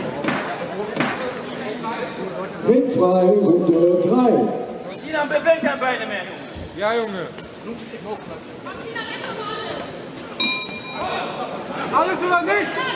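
Men talk and call out nearby in a large echoing hall.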